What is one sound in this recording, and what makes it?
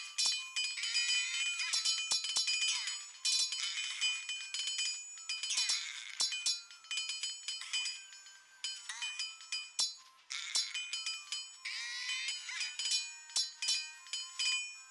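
Swords clash as small soldiers fight.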